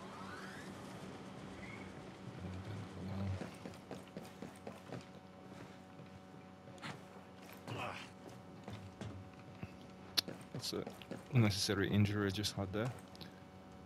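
Boots step softly on a hard floor.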